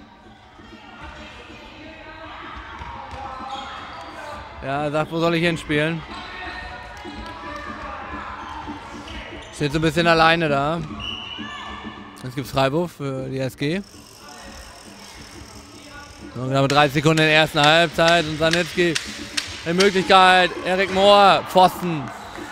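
Children shout and call out faintly in a large echoing hall.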